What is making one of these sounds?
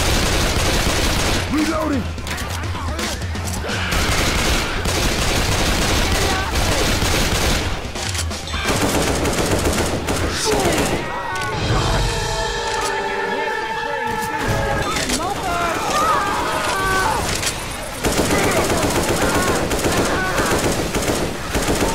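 Rapid gunfire rattles loudly and repeatedly.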